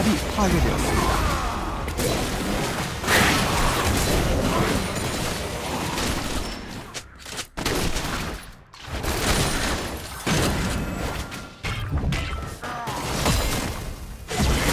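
Video game spell effects whoosh and blows clash in a battle.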